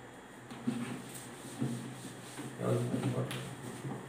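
An eraser rubs against a whiteboard.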